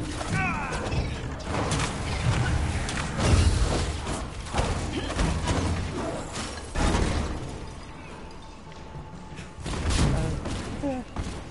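Energy blasts and heavy impacts crash in a fight.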